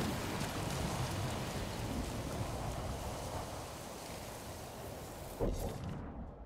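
Horse hooves thud slowly on soft ground.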